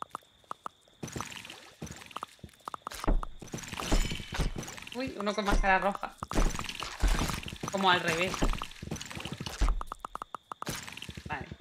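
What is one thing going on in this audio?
A young woman talks with animation over a microphone.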